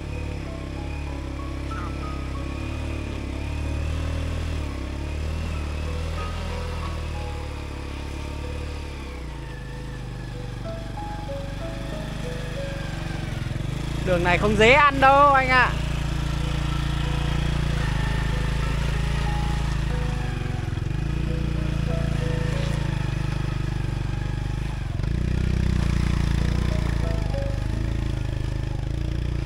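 A motorcycle engine putters and revs.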